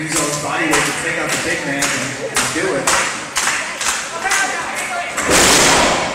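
A crowd claps in a steady rhythm in a large echoing hall.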